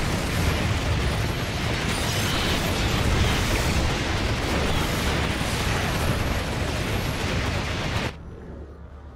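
Heavy energy beams blast down with loud, roaring explosions.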